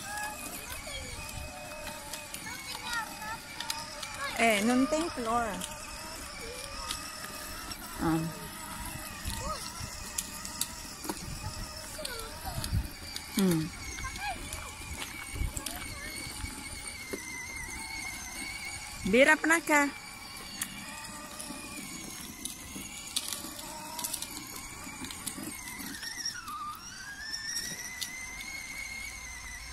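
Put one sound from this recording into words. A toy electric motorbike whirs steadily with a high whine that rises and falls.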